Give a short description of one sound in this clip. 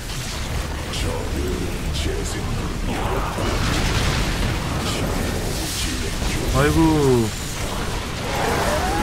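Explosions and creature screeches clash in a battle.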